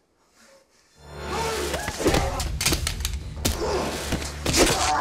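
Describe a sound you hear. A young woman shouts in alarm.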